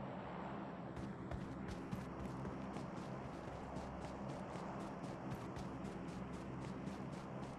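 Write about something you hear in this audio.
Footsteps run on grass.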